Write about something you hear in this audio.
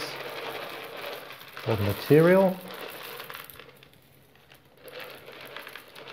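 Dry chickpeas pour and patter into a dish.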